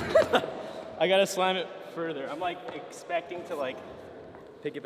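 A young man talks close by in an echoing hall.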